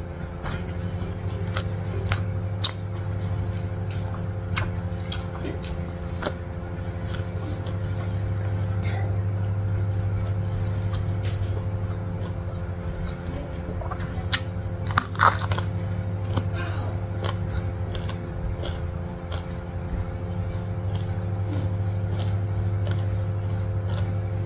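A woman chews food with crunchy, wet sounds close to a microphone.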